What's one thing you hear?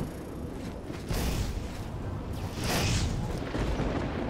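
A fireball bursts with a loud whoosh.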